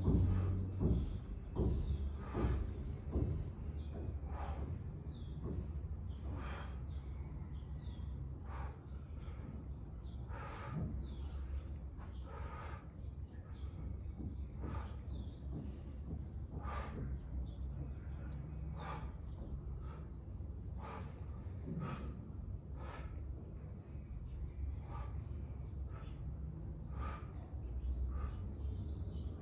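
A man exhales sharply in a steady rhythm, close by.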